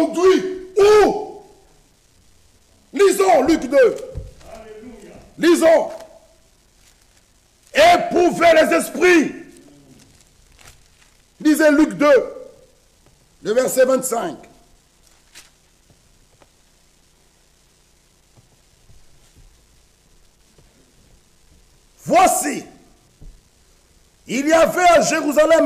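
A man preaches loudly and passionately into a microphone in an echoing room, with long pauses between bursts.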